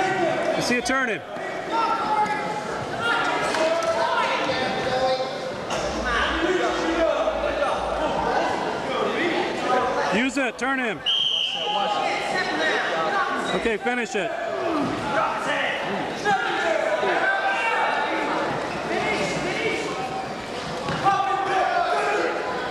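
Wrestlers thump and scuffle on a mat.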